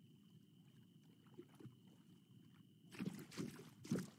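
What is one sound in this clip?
Water laps gently against a shore.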